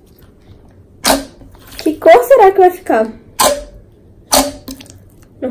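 Sticky slime squelches and pops as it is squeezed.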